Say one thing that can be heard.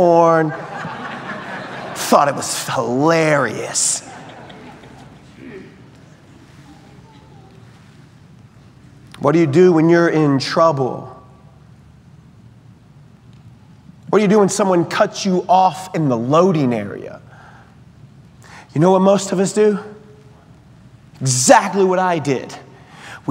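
A man speaks slowly and expressively through a microphone in a large echoing hall, with long pauses.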